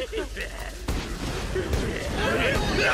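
Flames burst with a roaring explosion.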